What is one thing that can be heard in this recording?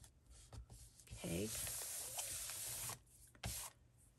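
Paper rustles and crinkles as hands press and smooth it.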